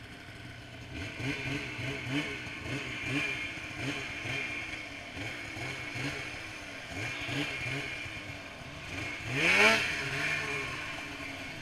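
A snowmobile engine revs up and down repeatedly.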